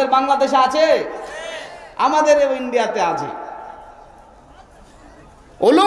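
A man preaches loudly and with fervour into a microphone, echoing through loudspeakers.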